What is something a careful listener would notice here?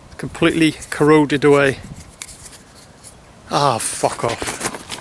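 A man speaks calmly, close up.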